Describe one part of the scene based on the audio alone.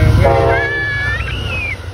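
Train wheels clatter rapidly on the rails as the train rushes past.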